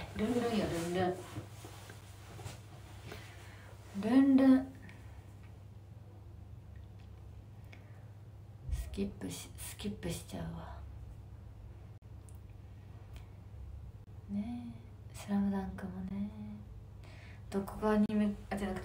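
A young woman speaks close to the microphone in short bursts.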